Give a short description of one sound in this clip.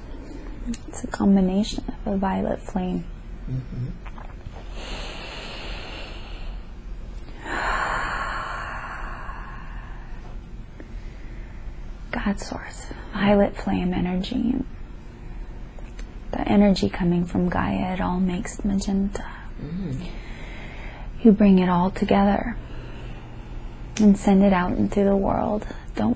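A young woman talks slowly and drowsily, close by, in short bursts.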